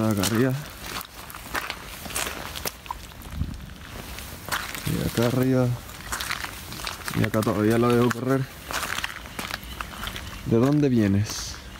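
Footsteps crunch on wet gravel.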